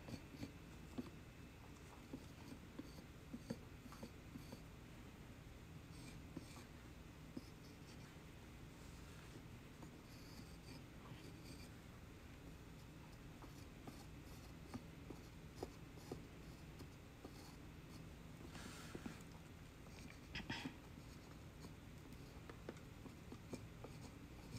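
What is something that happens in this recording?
A carving tool scrapes and clicks softly against dry clay.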